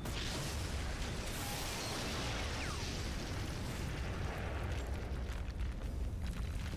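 A huge explosion roars and rumbles.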